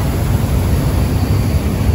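A boat's wake churns and splashes.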